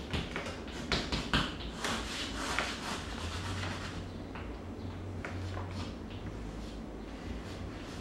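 Chalk scrapes and scratches across a wall in short strokes.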